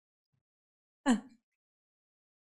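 A young woman speaks briefly and close into a microphone.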